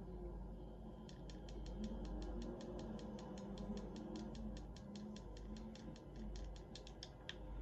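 Footsteps tap quickly and evenly through a television speaker.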